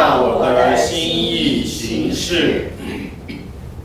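A man chants a prayer in a reverberant room, then falls silent.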